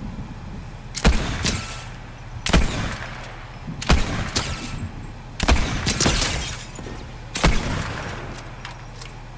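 Gunshots fire from a rifle in loud, sharp bursts.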